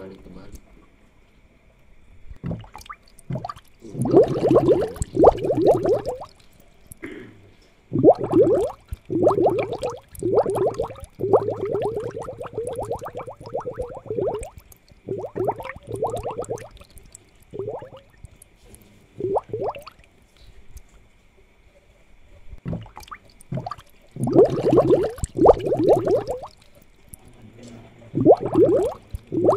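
Air bubbles gurgle steadily in an aquarium.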